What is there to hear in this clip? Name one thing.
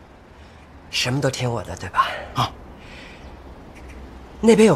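A young man speaks smugly.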